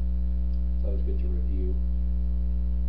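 A man speaks a few words briefly.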